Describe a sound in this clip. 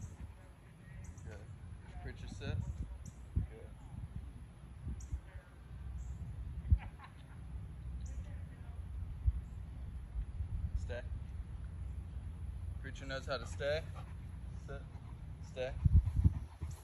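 A man gives short commands to a dog, heard from a distance outdoors.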